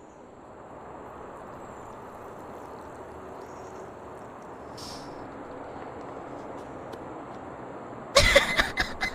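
Water pours steadily from a kettle into a cup.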